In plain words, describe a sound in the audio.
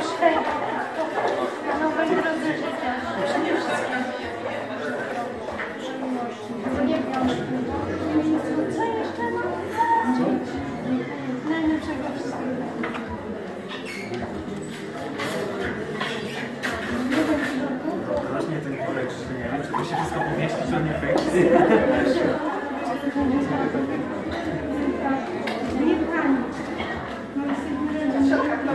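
A young woman answers softly.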